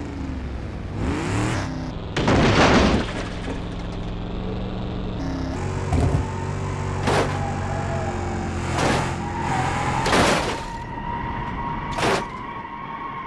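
A car body crashes and bangs against the ground.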